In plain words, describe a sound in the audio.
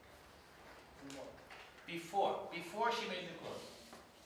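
An older man speaks calmly, heard from across a room.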